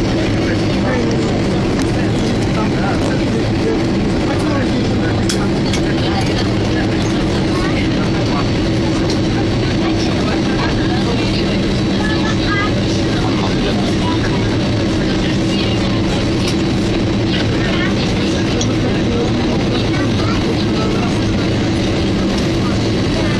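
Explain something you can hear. A train rumbles and hums steadily as it rolls along.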